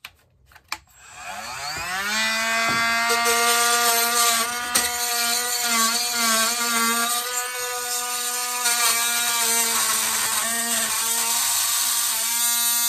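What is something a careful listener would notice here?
A motor spins up and then hums steadily with a high whine.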